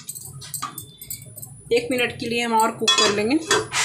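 A metal lid clinks onto a pan.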